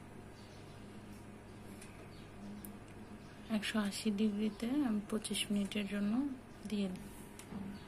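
An oven fan hums steadily.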